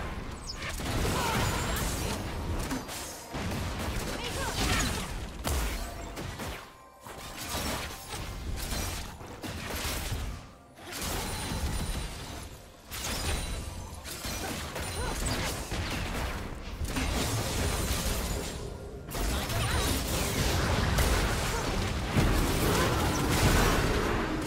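Spell effects whoosh, zap and crackle in a busy game battle.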